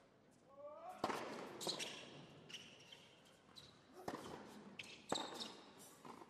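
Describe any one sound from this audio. A tennis ball is struck with a racket in an echoing indoor arena.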